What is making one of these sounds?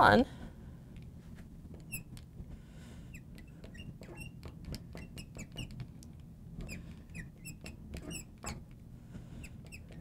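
A marker squeaks and taps on a glass board.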